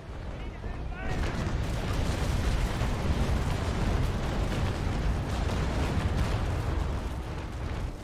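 Cannons fire a broadside in a long rumbling barrage.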